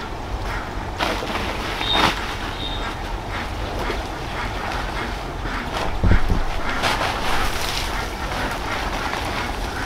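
A sack rustles and crinkles as it is shaken open.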